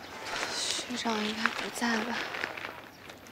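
A young woman speaks quietly to herself.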